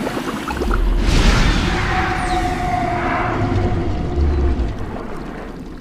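A creature snarls and roars as it lunges.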